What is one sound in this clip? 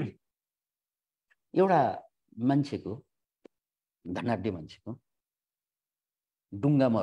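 A middle-aged man speaks calmly in short phrases through an online call.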